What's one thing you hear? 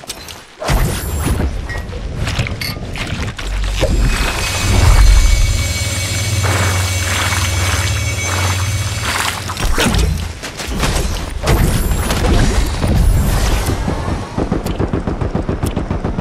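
Shimmering building sounds hum and crackle.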